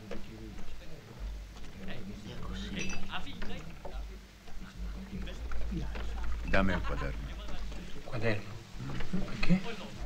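An elderly man talks in a low, calm voice close by.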